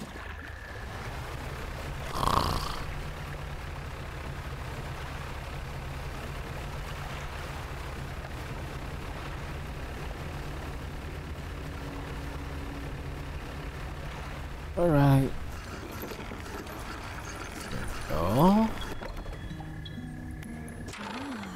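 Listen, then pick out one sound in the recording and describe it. A boat engine hums steadily at low pitch.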